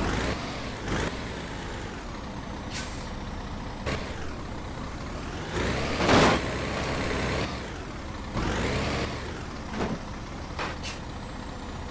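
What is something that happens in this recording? Heavy metal clunks and bangs ring out as a truck rolls onto a ramp.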